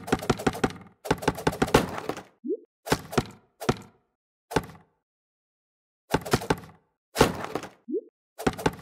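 A wooden target shatters with a crunching crack.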